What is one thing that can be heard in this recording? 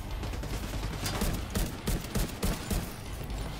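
Rapid gunshots crack in bursts.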